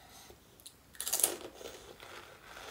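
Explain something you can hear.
A woman bites into a crunchy, wet snack up close.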